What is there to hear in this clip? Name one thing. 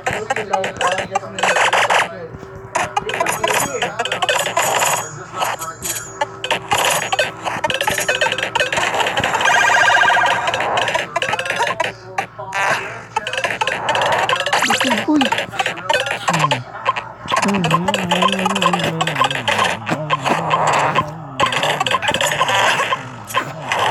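Quick electronic bleeps chime as coins are collected.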